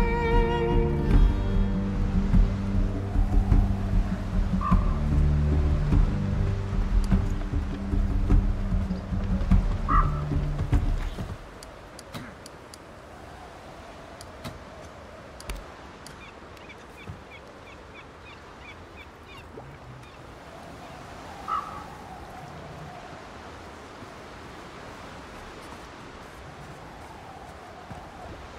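Waves lap against a wooden pier.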